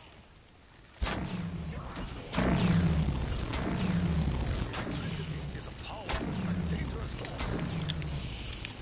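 An electric weapon crackles and zaps in loud bursts.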